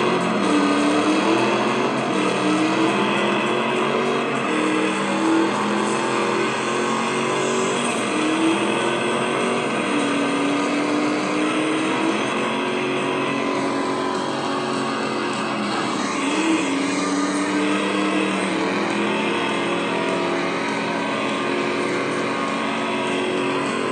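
A racing car engine roars and revs loudly from a game's speakers.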